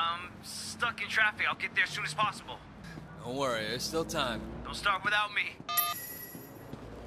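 A man talks on a phone with animation.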